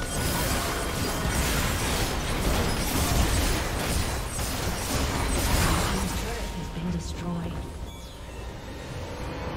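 Game spell effects crackle and blast in a busy battle.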